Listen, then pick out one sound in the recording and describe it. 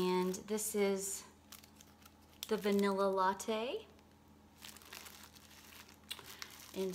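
Cellophane wrapping crinkles as it is handled.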